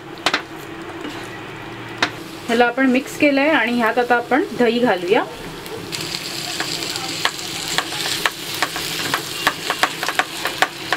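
A wooden spatula scrapes and knocks against a frying pan.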